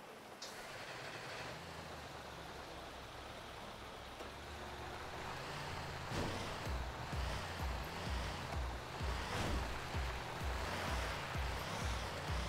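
A truck engine rumbles as the truck drives over rough ground.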